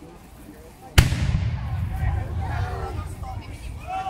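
A volley of muskets fires with a loud boom that echoes outdoors.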